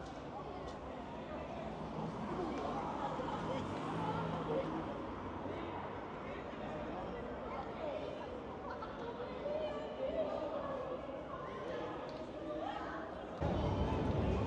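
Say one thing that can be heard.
Young women chat and talk casually nearby outdoors.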